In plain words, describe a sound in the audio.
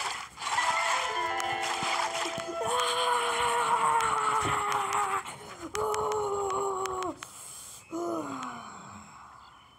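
A boy shouts loudly and excitedly close to a microphone.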